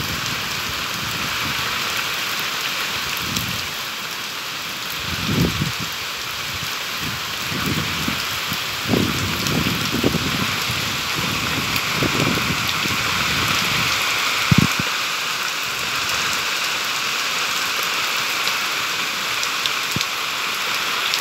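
Heavy rain and hail pour down outside in a steady roar.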